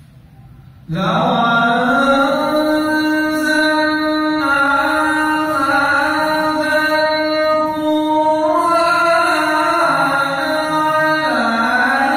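A man chants loudly in a long, wavering melody through a microphone, echoing in a large hall.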